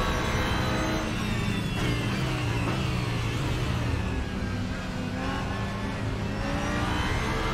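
A racing car engine drops in pitch as it shifts down, then revs back up.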